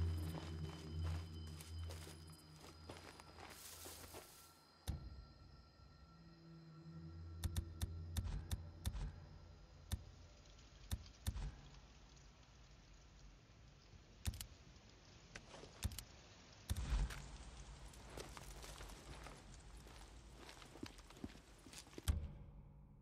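Footsteps rustle through tall grass and brush.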